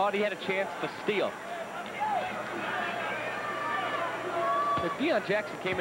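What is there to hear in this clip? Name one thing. A large indoor crowd murmurs and cheers.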